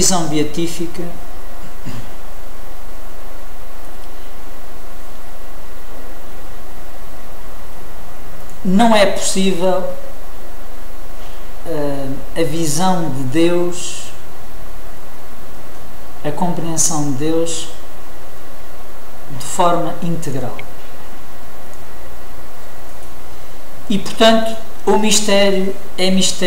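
A man speaks calmly in short bursts with pauses, close by.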